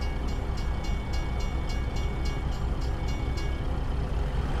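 A turn signal ticks steadily.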